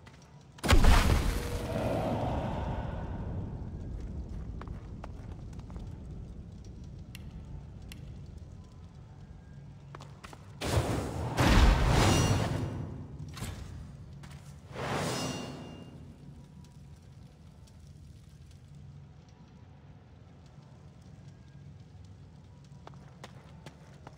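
Fire crackles and roars steadily.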